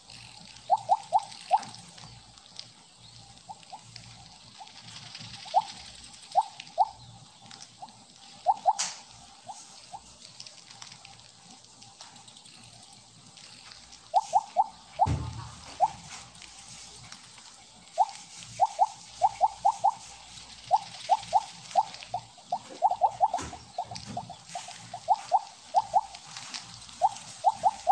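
Short bright electronic blips chime in quick bursts as a game snake collects pellets.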